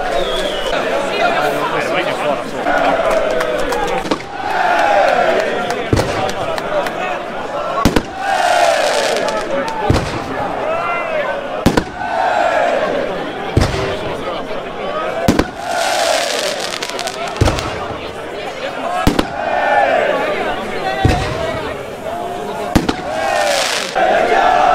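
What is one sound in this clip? A large crowd of football supporters chants in unison outdoors.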